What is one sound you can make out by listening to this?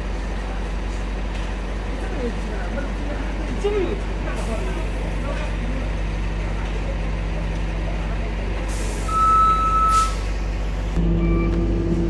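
Bus engines idle loudly nearby.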